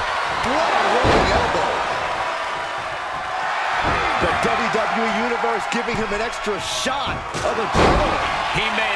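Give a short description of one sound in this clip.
A body slams down onto a wrestling ring mat with a heavy thud.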